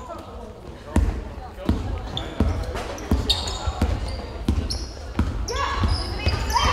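A basketball bounces with hollow thumps in an echoing hall.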